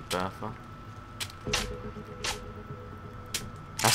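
A shotgun is loaded with metallic clicks.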